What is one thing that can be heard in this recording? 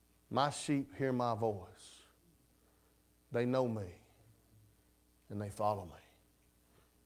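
A man speaks with emphasis through a microphone, pausing between phrases.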